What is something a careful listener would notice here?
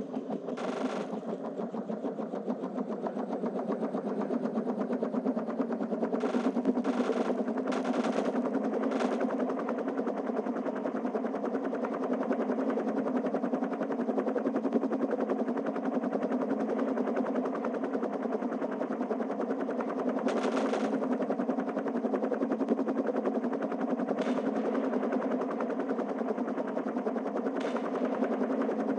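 A helicopter's rotor thumps steadily and loudly.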